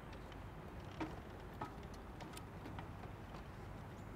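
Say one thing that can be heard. Footsteps clank on metal steps.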